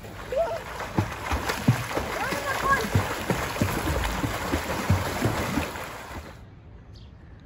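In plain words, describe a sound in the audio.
Swimmers kick and splash in a pool.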